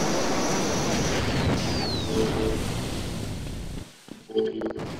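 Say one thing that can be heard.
A beam weapon fires with a steady crackling hiss.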